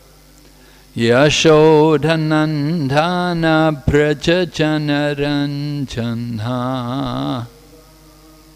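An elderly man sings close into a microphone.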